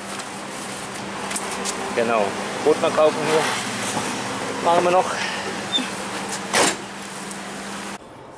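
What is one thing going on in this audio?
A plastic bag rustles as it is handled.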